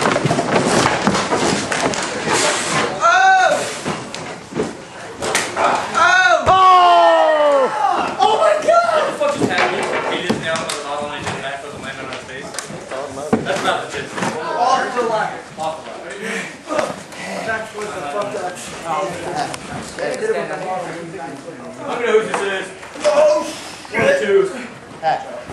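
A small crowd of young men shout and cheer close by.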